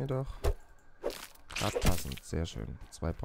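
An axe chops wetly into a leafy plant.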